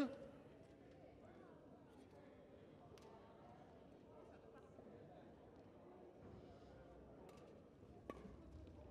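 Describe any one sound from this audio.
A crowd murmurs quietly in the background.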